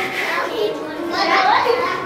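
A crowd of adults and children chatters in a large echoing hall.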